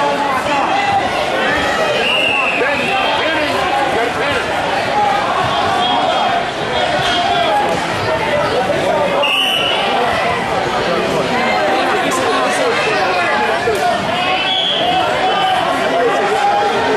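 A large crowd chatters and cheers in an echoing hall.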